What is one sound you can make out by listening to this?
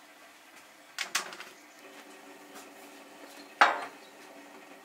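A metal pan clatters down on a surface.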